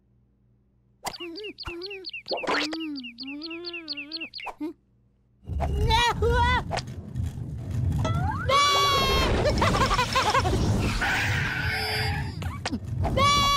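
A cartoon chick chirps and squeaks in a high voice.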